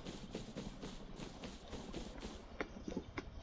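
Footsteps swish through grass at a steady pace.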